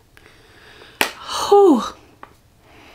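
A young woman sighs with a falling voice, close to a microphone.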